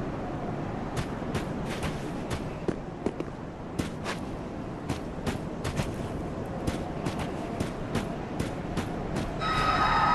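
Armoured footsteps clink and crunch on stone.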